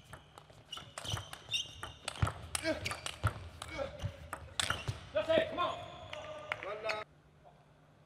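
Sports shoes squeak on the floor as players move.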